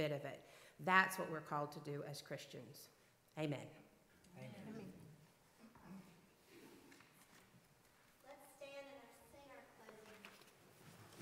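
A woman speaks calmly through a microphone in an echoing hall.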